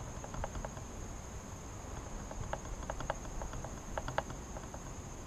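Wooden hive frames knock and scrape as a beekeeper lifts them.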